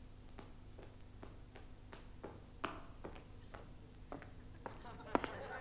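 Footsteps tap slowly on a hard floor in a quiet, echoing hall.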